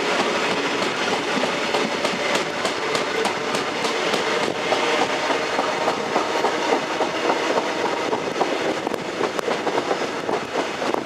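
Train wheels click rapidly over rail joints.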